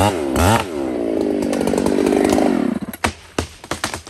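A chainsaw engine runs and revs.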